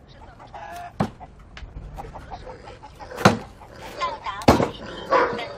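A cleaver chops meat on a block with sharp thuds.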